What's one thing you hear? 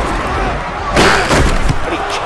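Players collide with a heavy thud.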